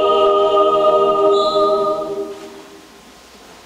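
A large choir sings a held chord that rings out and fades in an echoing hall.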